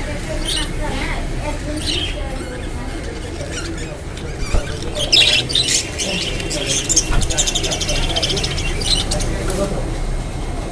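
A flock of budgerigars chirps and chatters.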